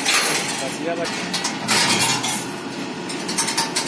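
Loose wire rings jingle and scrape as a man handles them.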